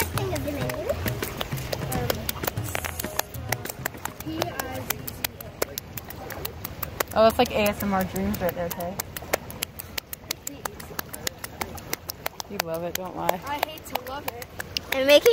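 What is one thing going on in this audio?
Wet hands pat and slap on stone.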